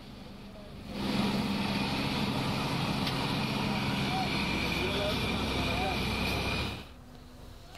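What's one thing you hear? A boat engine chugs as a boat moves through water.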